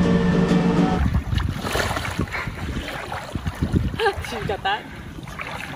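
Water splashes as someone wades through shallow water.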